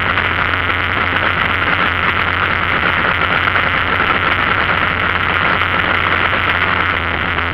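Wind rushes loudly against a moving vehicle.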